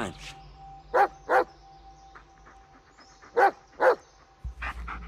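A dog barks sharply a few times.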